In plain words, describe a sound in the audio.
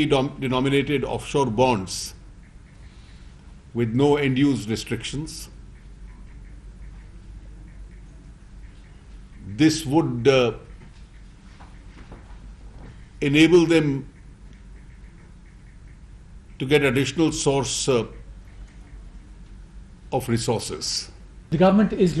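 A middle-aged man reads out a statement calmly into microphones, in short bursts with pauses.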